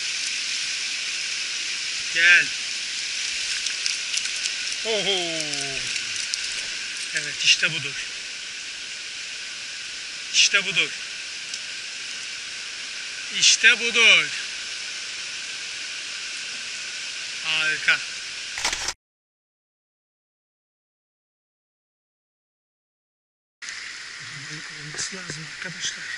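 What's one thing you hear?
A shallow stream splashes and gurgles steadily over stones.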